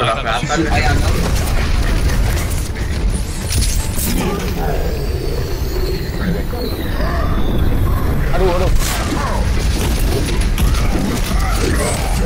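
Explosions boom in a video game fight.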